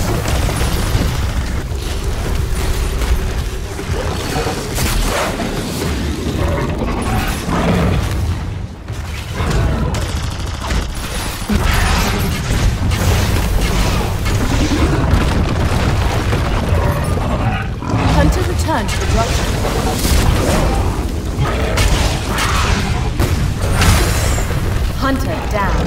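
Heavy blows and explosions boom.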